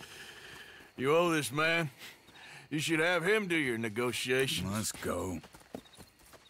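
A second man speaks firmly close by.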